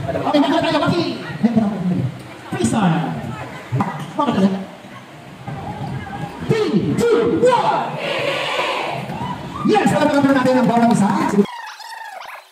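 A crowd of young women shout and cheer loudly in a large echoing hall.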